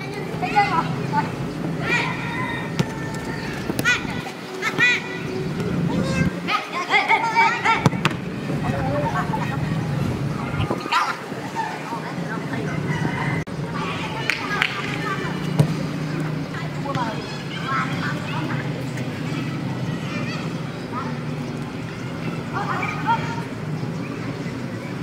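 Young men shout to each other outdoors during a game.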